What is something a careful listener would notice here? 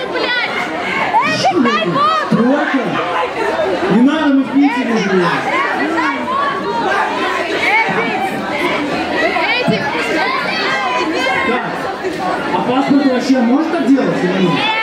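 Loud music with a heavy beat plays through loudspeakers.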